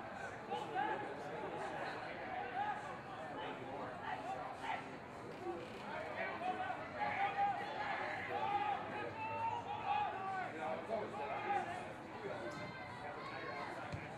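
Men shout and call out to one another across an open field.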